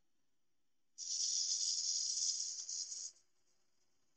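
A gouge scrapes and shaves a spinning wooden bowl.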